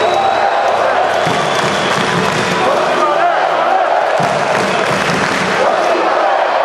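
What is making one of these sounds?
A large crowd chatters and cheers in a big echoing arena.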